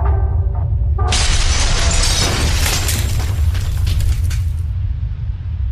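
A metal panel shatters into pieces with a loud crash.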